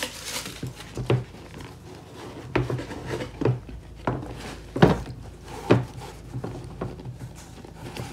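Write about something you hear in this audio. A shoe insole taps and scrapes against a shoe.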